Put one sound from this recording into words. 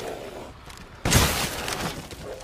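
A gunshot cracks sharply.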